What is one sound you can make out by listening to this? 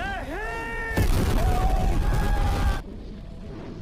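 An explosion booms with a loud roar.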